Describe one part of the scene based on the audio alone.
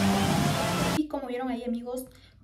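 A young woman speaks with animation, close to the microphone.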